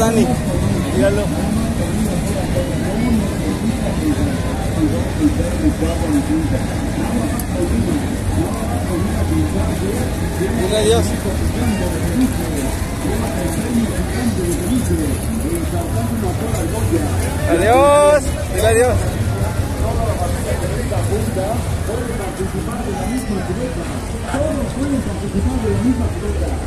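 A crowd chatters throughout, outdoors.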